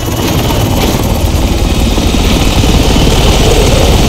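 A helicopter's rotor thumps loudly close by.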